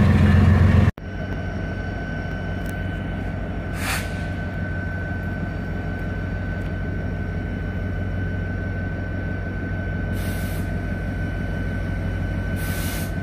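A locomotive engine hums low and steady as it approaches from a distance.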